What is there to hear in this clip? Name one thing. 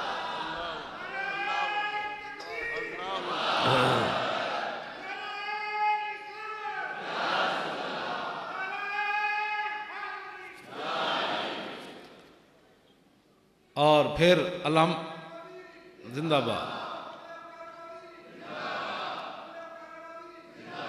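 An elderly man speaks forcefully into a microphone, with a loudspeaker echo.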